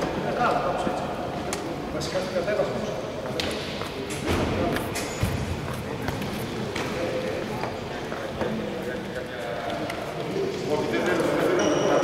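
Several young men talk and call out to each other in a large echoing hall.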